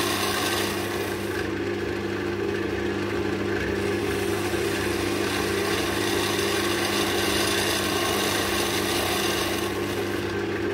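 A tool scrapes against spinning wood.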